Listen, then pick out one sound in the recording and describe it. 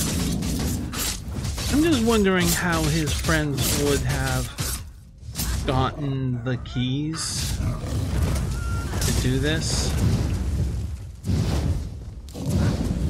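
Blows thud and clash in a fight.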